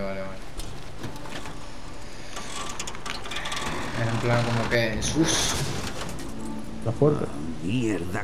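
A metal panel cover creaks and scrapes open.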